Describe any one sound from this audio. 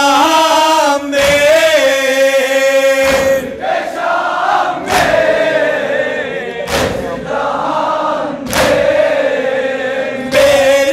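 A crowd of men chants along loudly.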